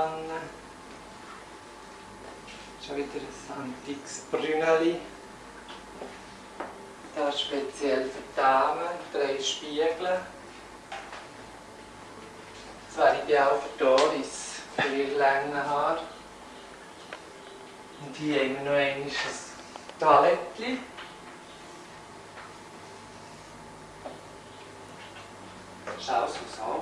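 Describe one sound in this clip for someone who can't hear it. A man speaks calmly close by, in short bursts with pauses.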